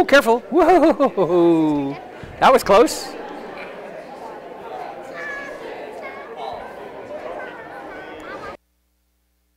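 Young children shout and chatter nearby.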